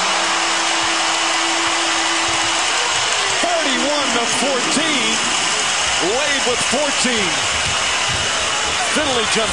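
A large crowd cheers and murmurs in a big echoing arena.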